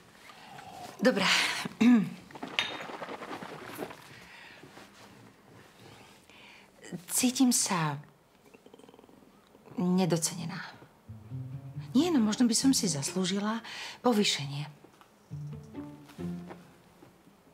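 A woman speaks calmly and earnestly, close by.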